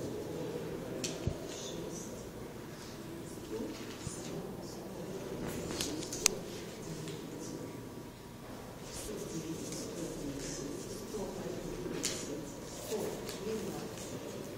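Paper sheets rustle and slide on a table.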